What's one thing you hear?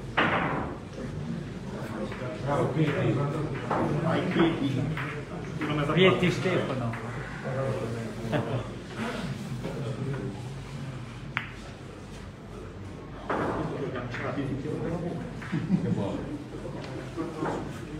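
Men talk in the background.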